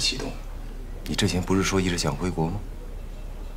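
A young woman asks a question calmly.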